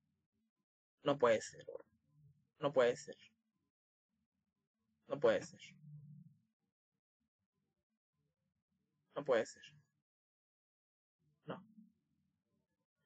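A young man speaks calmly in short phrases close to a microphone, with pauses between them.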